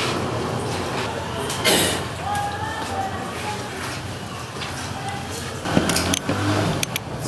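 Crutches knock on a hard floor.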